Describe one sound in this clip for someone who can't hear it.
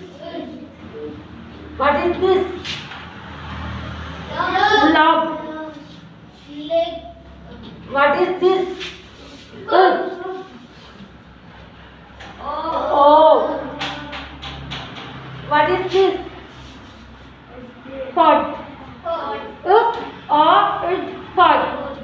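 A woman speaks clearly and slowly, as if teaching, close by.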